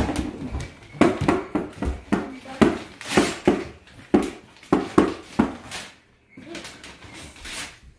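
Wrapping paper rustles and crinkles.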